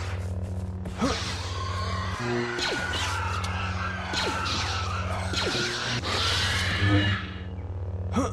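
A lightsaber swings and clashes in a short fight.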